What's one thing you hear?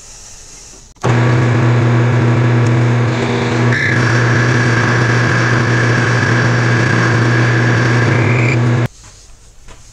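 A metal lathe spins with a steady motor hum.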